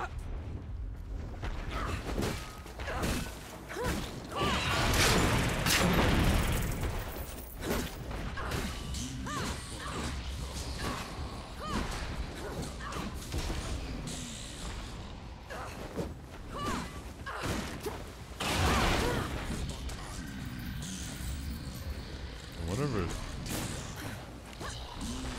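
Heavy weapon blows strike with sharp thuds.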